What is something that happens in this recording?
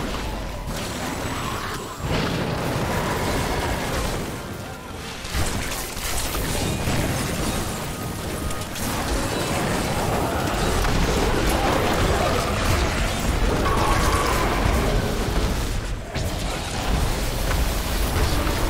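Magic blasts and explosions crackle and boom in quick succession.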